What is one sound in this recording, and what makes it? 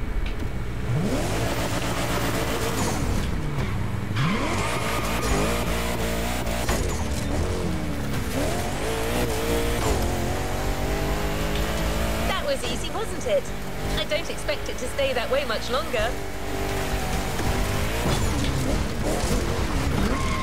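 A car engine revs loudly and roars as the car speeds up.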